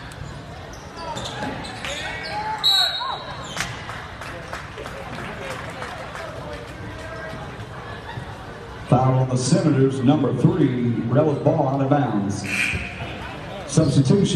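A crowd murmurs and cheers in a large echoing gym.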